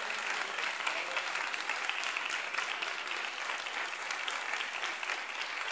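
A large crowd applauds steadily in a big hall.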